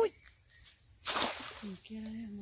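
A cast net splashes into water.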